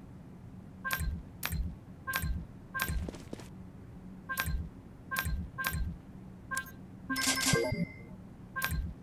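Short game menu clicks sound again and again.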